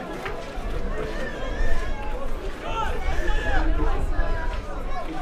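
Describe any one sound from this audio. A crowd murmurs and calls out in an open-air stadium.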